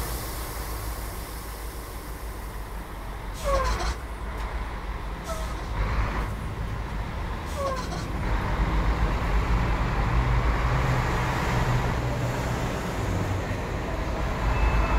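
A bus engine rumbles steadily as the bus drives slowly.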